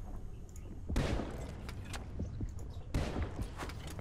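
A spear gun fires underwater with a sharp thud.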